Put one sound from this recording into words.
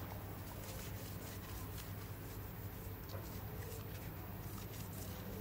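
A cloth rubs softly against a phone's back.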